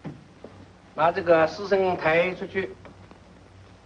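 A man speaks sharply, close by.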